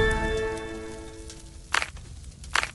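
A bright chime rings out and slowly fades.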